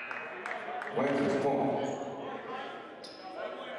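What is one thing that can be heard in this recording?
Spectators cheer and shout.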